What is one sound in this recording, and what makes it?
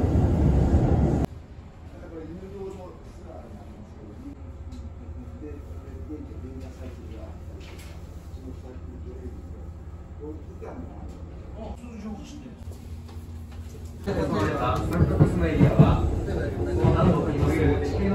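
A train rumbles steadily while moving.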